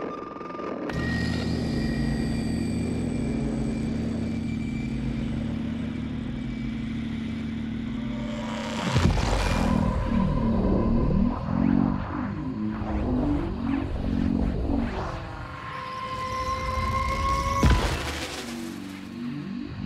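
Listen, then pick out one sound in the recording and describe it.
A television hisses with loud static.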